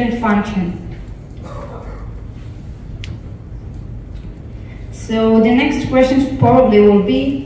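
A young woman speaks calmly through a microphone.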